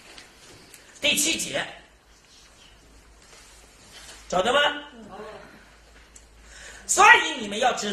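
A middle-aged man speaks in bursts, reading aloud close to a microphone.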